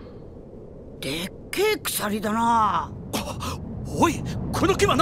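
A young man speaks with surprise.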